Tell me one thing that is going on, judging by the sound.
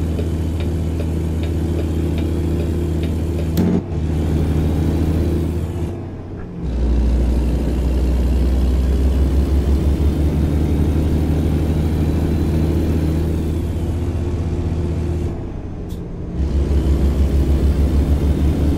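A truck engine drones steadily, dipping briefly between gear changes.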